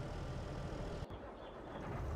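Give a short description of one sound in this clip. A tractor engine idles with a low rumble.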